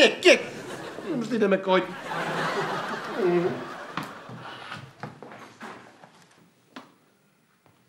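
A woman speaks and laughs close by.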